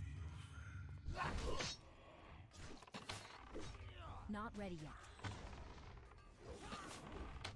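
Weapon blows land with sharp hits in a video game fight.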